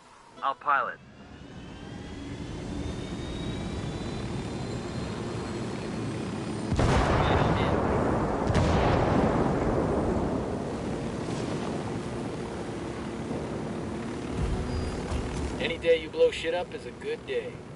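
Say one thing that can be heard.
A helicopter's rotor spins up and whirs steadily overhead.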